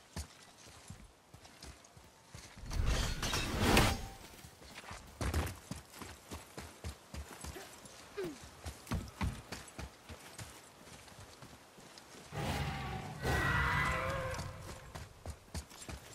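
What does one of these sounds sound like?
Footsteps crunch over grass and rock.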